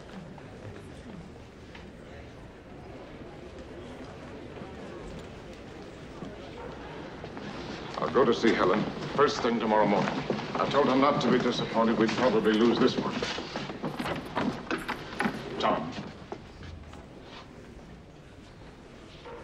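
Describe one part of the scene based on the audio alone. Footsteps shuffle on a wooden floor.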